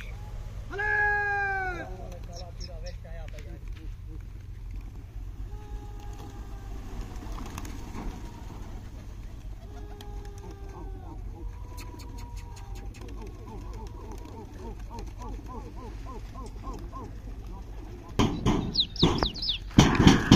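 A flock of pigeons flaps its wings overhead and takes off from the ground.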